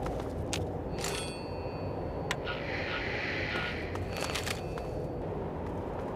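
A radio beeps and crackles briefly.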